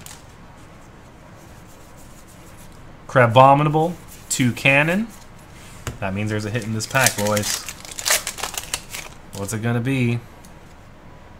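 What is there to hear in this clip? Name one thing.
Cards rustle as they are shuffled through.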